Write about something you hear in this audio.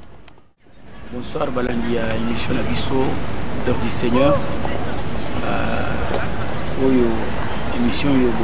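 A middle-aged man speaks calmly and clearly, close to a microphone.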